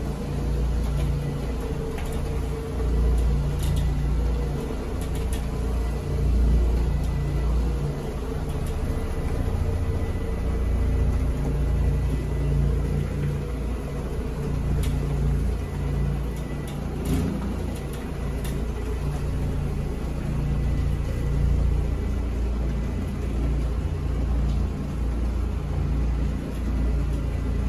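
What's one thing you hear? A floor scrubbing machine hums and whirs steadily, close by.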